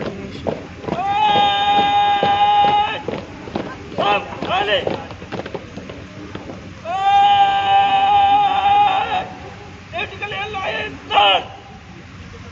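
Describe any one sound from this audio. A man shouts drawn-out commands loudly outdoors.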